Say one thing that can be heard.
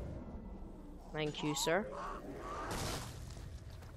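A blade stabs into flesh with a heavy thud.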